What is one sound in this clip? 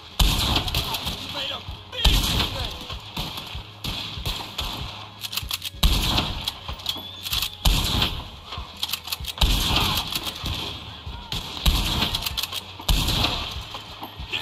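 A rifle fires loud shots, one every couple of seconds, each echoing away.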